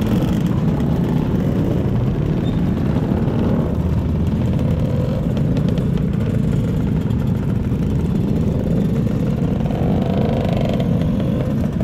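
Many scooter engines idle and buzz close by.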